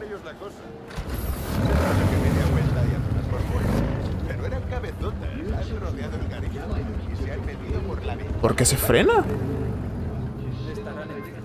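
A motorcycle engine roars as it rides off.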